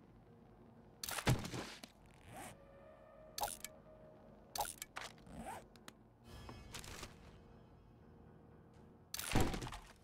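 Short clicks and rustles sound now and then.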